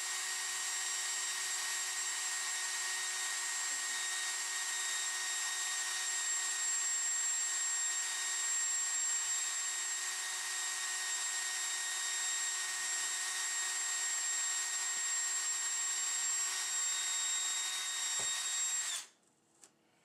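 A cordless drill whines steadily as it bores into a metal mount.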